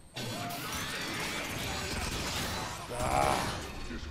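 Metal robots clang and crash in a fight.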